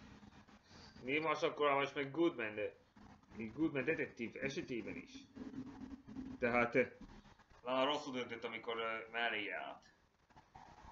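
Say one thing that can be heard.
A young man talks calmly into a nearby microphone.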